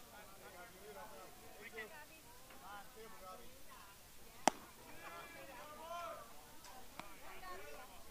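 Young men call out and chatter across an open field.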